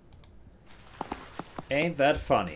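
Gunshots crack in quick succession.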